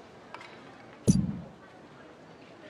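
A bright game chime rings out with a low thump.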